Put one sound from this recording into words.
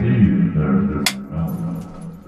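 A clapperboard snaps shut.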